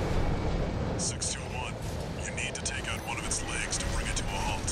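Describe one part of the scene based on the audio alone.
Gunfire and explosions crack in rapid bursts.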